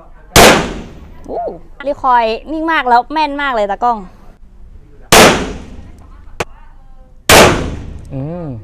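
A pistol fires single loud shots outdoors, each with a short echo.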